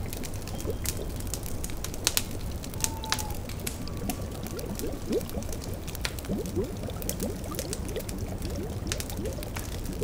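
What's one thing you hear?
A cauldron bubbles softly.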